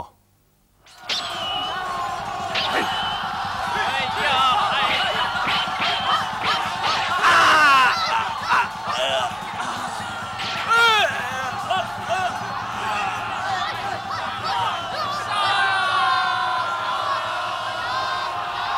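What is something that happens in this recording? A crowd of men shouts and yells in battle.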